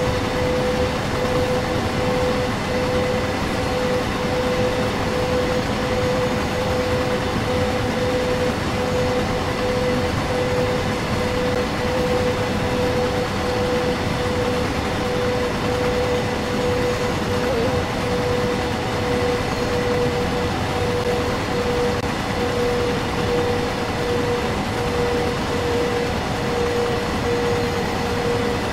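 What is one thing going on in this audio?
A freight train rumbles steadily along the rails.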